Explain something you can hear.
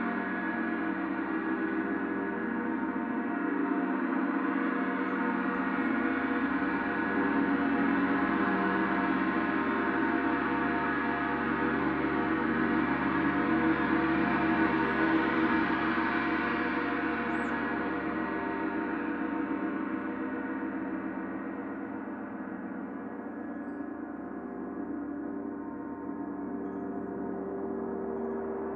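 A large gong hums and shimmers steadily, swelling and then slowly fading.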